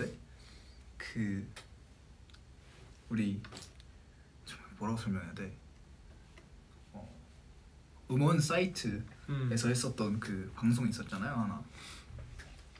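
Another young man answers casually, close by.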